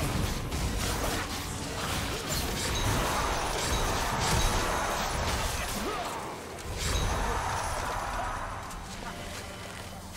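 Game spell blasts and weapon hits crackle and thud during a fight.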